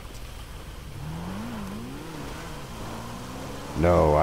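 A motorbike engine revs and drones, rising and falling in pitch.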